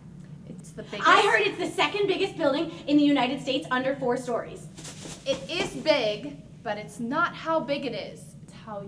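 A young woman shouts and cheers with excitement, close by.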